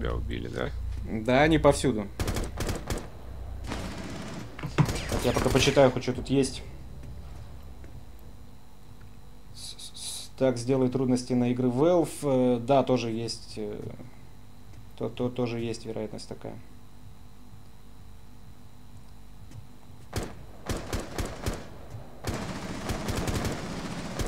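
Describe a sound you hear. Gunshots crack in short bursts.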